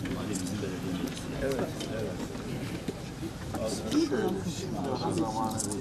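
Several men talk over one another nearby.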